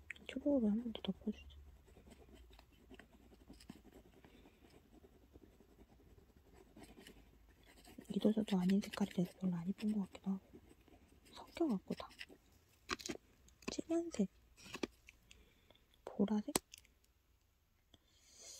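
An oil pastel scratches and rubs softly across paper.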